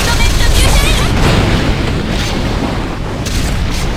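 A magic blast explodes with a loud fiery roar.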